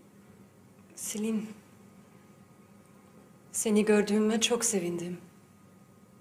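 A young woman speaks calmly nearby.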